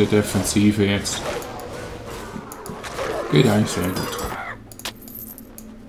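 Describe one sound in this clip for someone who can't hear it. Weapons clash and strike.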